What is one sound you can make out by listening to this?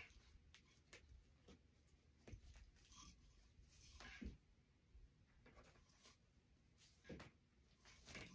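Small items tap and knock on a table.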